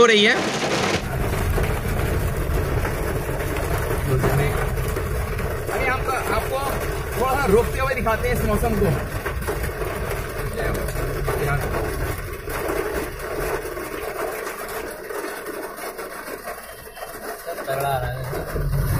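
Heavy rain drums hard on a car's roof and windscreen.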